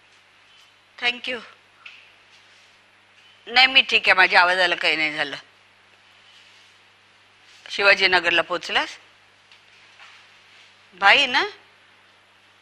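A middle-aged woman speaks anxiously into a phone in short bursts.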